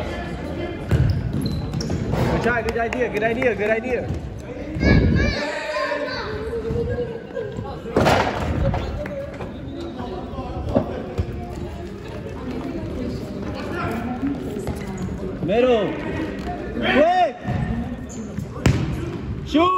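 A ball thuds as it is kicked in an echoing hall.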